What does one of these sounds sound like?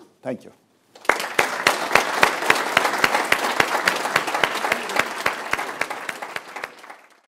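An audience claps loudly and steadily, then fades.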